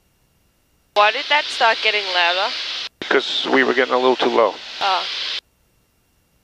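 A man speaks calmly over an aircraft headset intercom.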